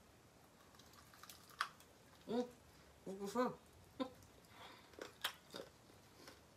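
A woman bites into crispy fried chicken with a loud crunch.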